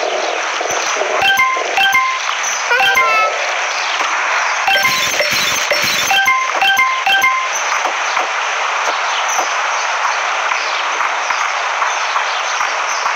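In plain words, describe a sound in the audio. A cartoon police van drives along with a hum.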